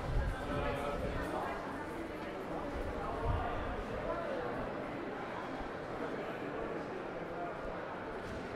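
Many people talk in a low murmur that echoes around a covered passage.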